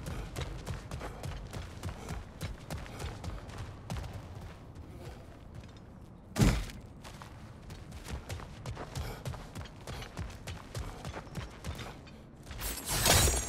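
Heavy footsteps tread on stone at a steady walking pace.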